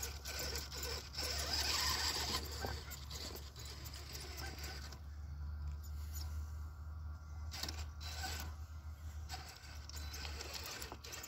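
A small electric motor whines as a toy truck crawls over rocks.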